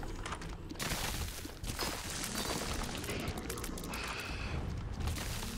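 Video game shots and blasts pop and crackle rapidly.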